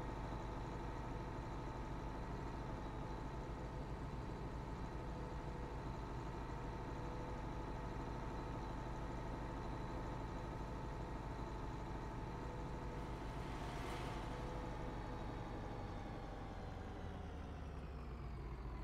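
A tractor engine hums steadily as it drives along.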